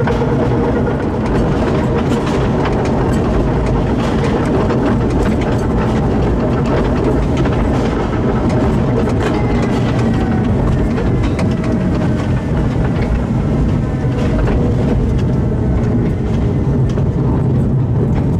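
A small mine train rumbles loudly along rails through a tunnel.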